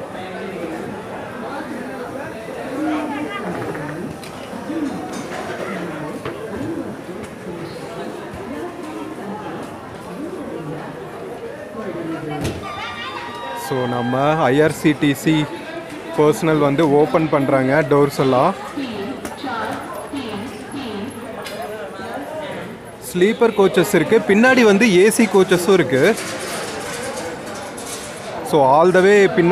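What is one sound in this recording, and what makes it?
A crowd of people chatters under an echoing platform roof.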